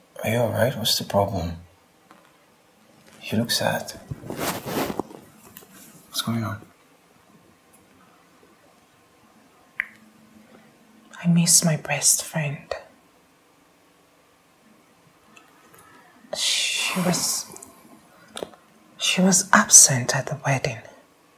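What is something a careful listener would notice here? A man speaks softly and earnestly up close.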